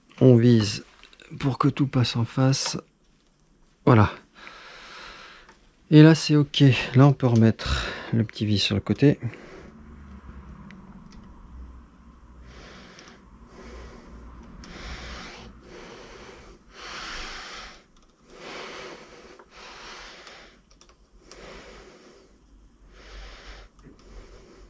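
Small scooter parts click and rattle as hands fit them together.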